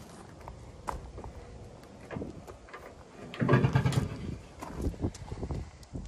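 A metal engine door is unlatched and swung open with a clatter.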